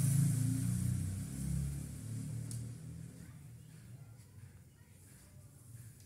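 A wooden ruler scrapes softly across cloth.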